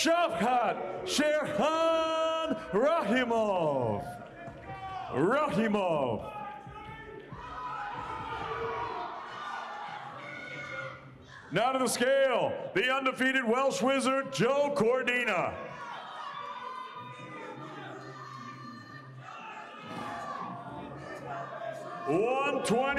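A man speaks loudly with animation through a microphone over loudspeakers.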